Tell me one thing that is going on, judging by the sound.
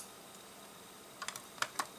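Plastic toy bricks click and snap as hands fit them together.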